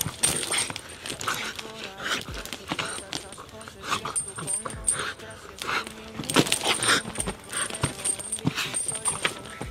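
A man talks to a dog in an encouraging voice close by.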